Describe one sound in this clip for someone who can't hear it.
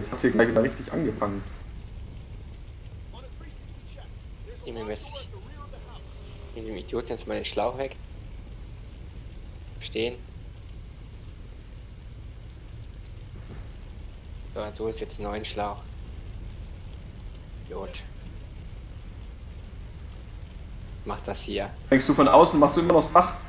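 A young man talks casually into a nearby microphone, in short bursts.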